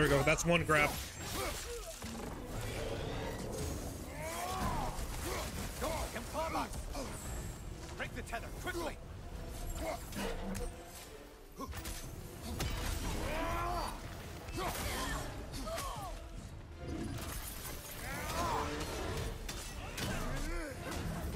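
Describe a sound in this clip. Heavy blows thud and clang in a fight.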